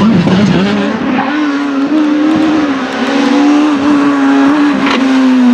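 A second rally car engine revs loudly as the car approaches.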